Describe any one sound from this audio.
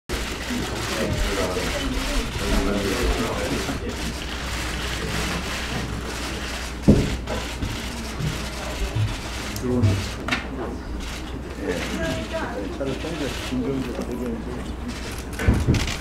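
Several men and women chat and greet each other at the same time.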